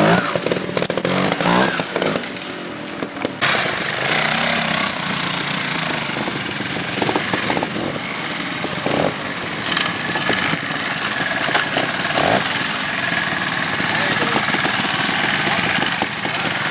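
A trials motorcycle engine revs in short bursts.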